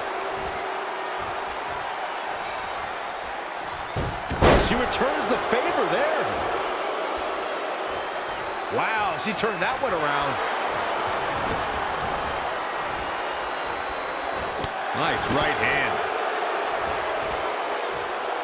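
A large crowd cheers and murmurs steadily in a big arena.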